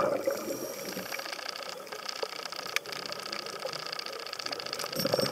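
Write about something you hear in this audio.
Steady underwater crackling and popping come from a reef.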